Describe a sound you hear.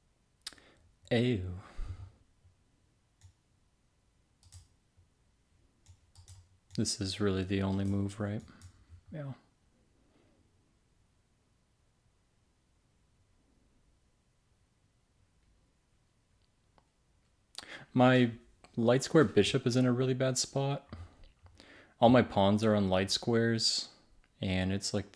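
An adult man talks calmly into a close microphone, in bursts with pauses.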